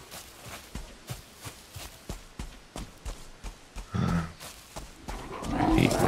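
Footsteps crunch steadily on soft ground.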